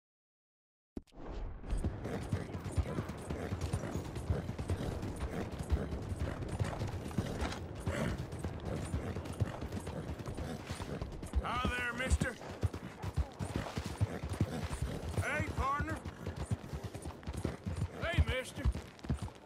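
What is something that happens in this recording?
A horse's hooves clop steadily on gravel and rails.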